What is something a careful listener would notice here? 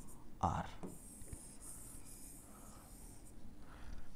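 A marker squeaks and scratches on a board.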